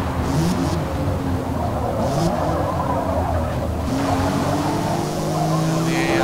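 Tyres screech as a car slides through a bend.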